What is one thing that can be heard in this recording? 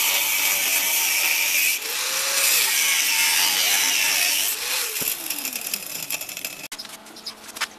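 An angle grinder whines against steel.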